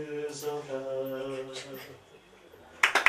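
A middle-aged man sings into a microphone.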